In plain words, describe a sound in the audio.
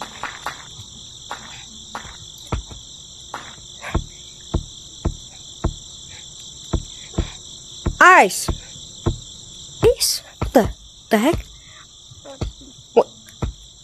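Footsteps thump steadily on hollow wooden planks.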